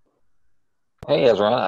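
A second man starts speaking over an online call.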